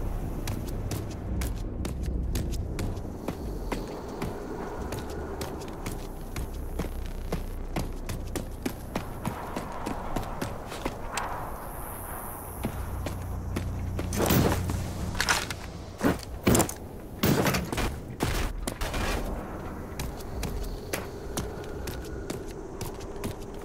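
Footsteps crunch steadily over dirt and gravel.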